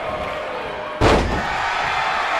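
A body slams hard onto a wrestling ring with a loud thud.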